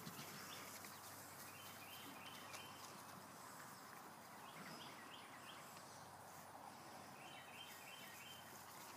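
A puppy whimpers with short, high squeaks.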